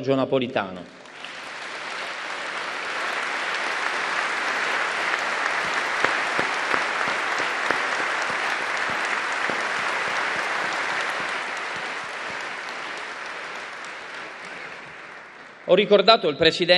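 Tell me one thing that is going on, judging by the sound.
A large crowd applauds.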